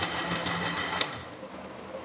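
A blender switch clicks.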